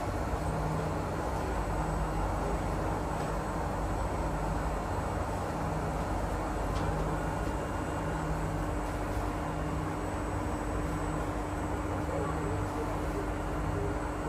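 A train rumbles and hums steadily along the track.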